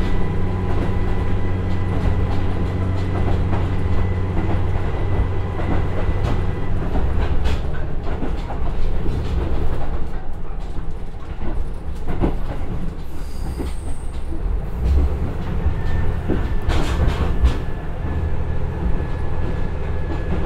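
A diesel train engine hums and drones steadily.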